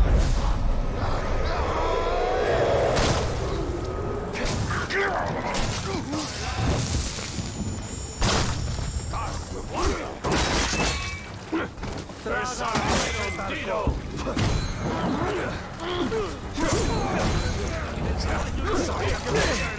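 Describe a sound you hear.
Men grunt and cry out in a fight.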